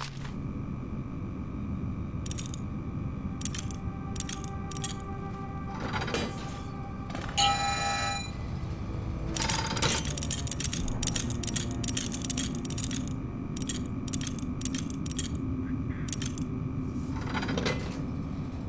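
Metal dials click sharply as they are turned, one notch at a time.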